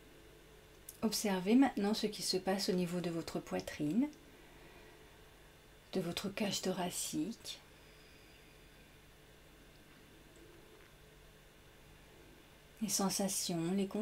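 A young woman speaks calmly and softly into a microphone, with long pauses.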